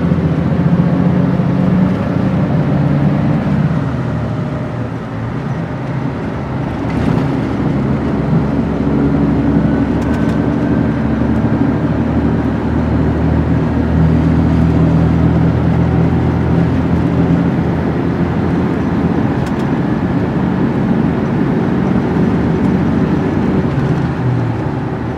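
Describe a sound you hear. A bus engine drones steadily while driving.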